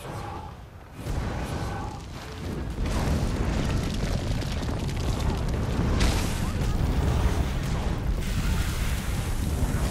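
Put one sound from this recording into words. Fiery spell blasts crackle and roar in a game battle.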